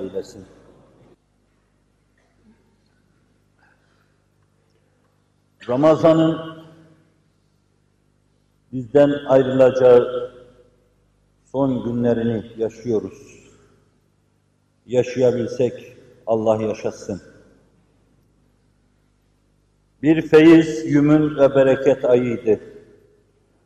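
An elderly man speaks slowly and emotionally in short phrases, close by, with pauses between them.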